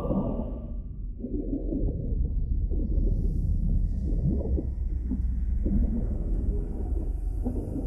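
Bubbles gurgle and rise through deep water.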